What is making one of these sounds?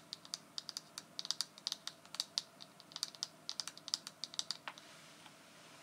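Long fingernails tap quickly on a hard plastic case.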